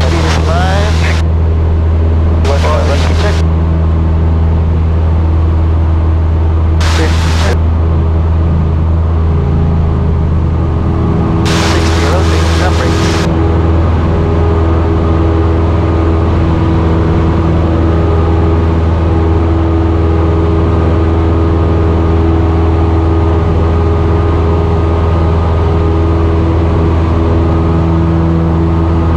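A small propeller plane's engine drones loudly and steadily at full power.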